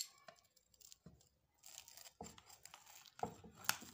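A pizza cutter rolls and crunches through crisp flatbread.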